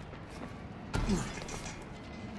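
Hands grab onto a stone ledge with a dull thud.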